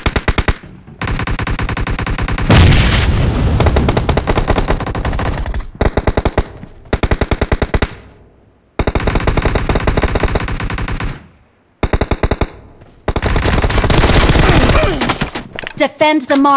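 Rifle fire rattles in rapid bursts.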